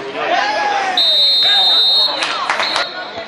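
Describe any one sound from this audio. A referee's whistle blows a long blast.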